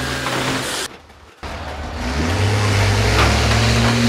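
A bus crashes into another bus with a heavy metal crunch.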